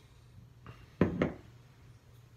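Glass bottles clink together in a toast.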